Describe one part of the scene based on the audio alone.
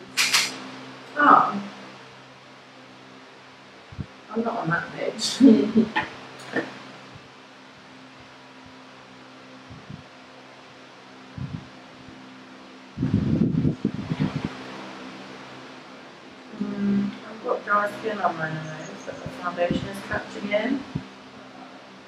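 A second young woman talks and laughs close by.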